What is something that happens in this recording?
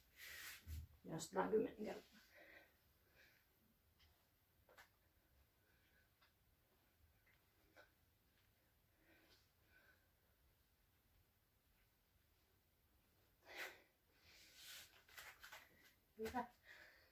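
A person shifts and thumps on a floor mat.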